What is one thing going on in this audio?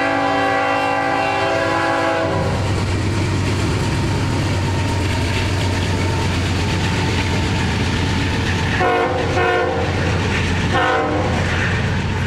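A train horn blares loudly in long blasts.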